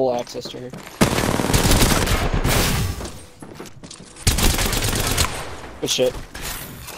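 Gunfire rattles in loud, rapid bursts.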